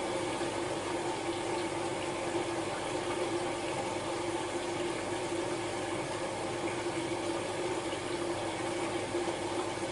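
Clothes tumble softly inside a washing machine drum.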